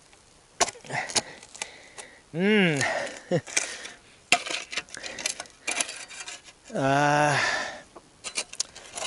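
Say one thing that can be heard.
A shovel scrapes and digs into stony soil.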